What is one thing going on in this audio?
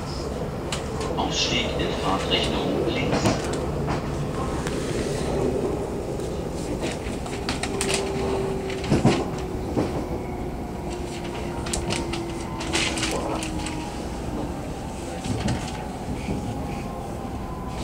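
A train's wheels clack and squeal on the rails.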